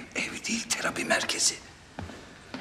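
A middle-aged man speaks tensely up close.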